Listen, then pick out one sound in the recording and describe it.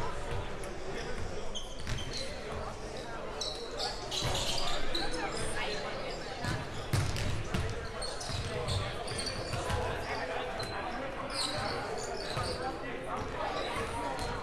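Spectators chatter in the stands.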